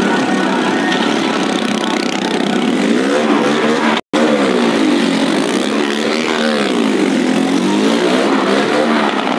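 Engines roar and rev up and down, echoing slightly.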